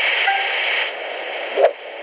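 A golf club swishes and strikes a ball.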